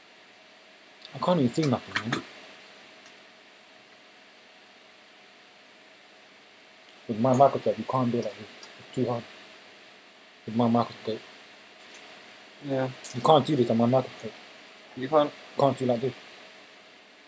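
A man talks calmly into a nearby microphone, in short bursts.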